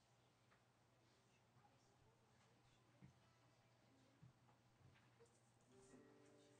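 Soft knocks and thumps come as equipment is handled.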